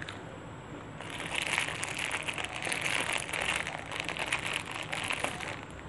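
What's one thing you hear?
Fresh leaves rustle and crackle as they are torn.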